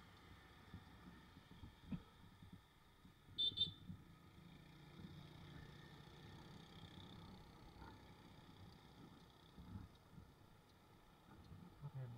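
Other motorbikes pass nearby.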